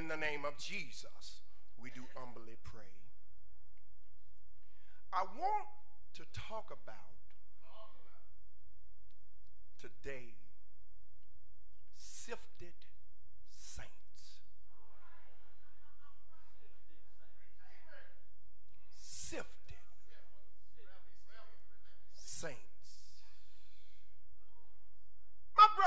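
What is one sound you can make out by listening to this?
A man speaks slowly into a microphone, with long pauses.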